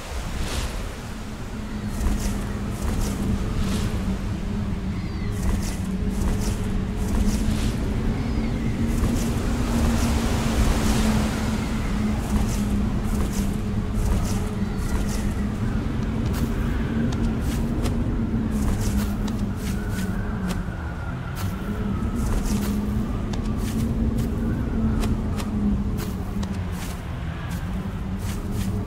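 Rushing water roars steadily.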